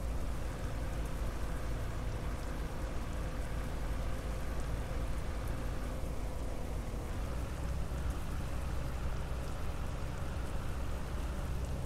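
A bus engine rumbles steadily as the bus drives along a road.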